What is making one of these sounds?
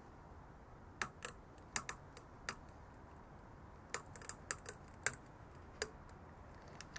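A ratchet clicks sharply several times.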